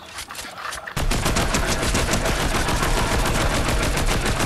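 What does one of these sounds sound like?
An automatic rifle fires rapidly in a video game.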